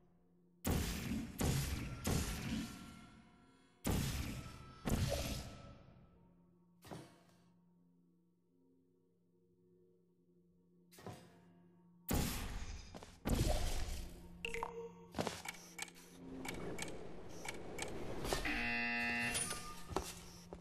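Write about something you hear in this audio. A futuristic gun fires again and again with sharp, ringing zaps.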